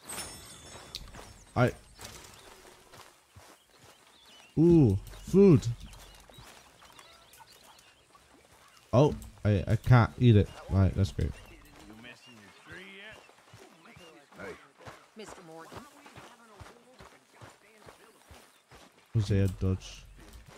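Footsteps brush and thud on grass.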